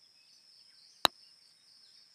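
A golf club strikes a ball with a sharp smack.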